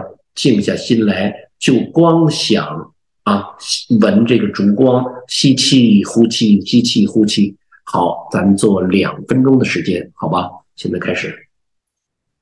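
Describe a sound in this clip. A middle-aged man speaks calmly and clearly into a nearby microphone.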